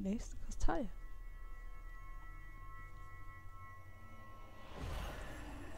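A glowing crystal rings with a steady, shimmering chime.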